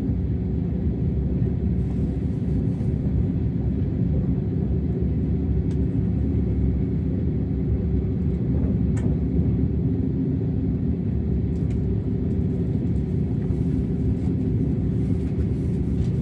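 A train rumbles steadily on the tracks.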